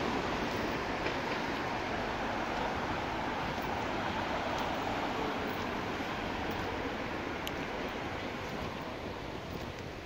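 Cars drive past on a nearby street, their tyres hissing on the road.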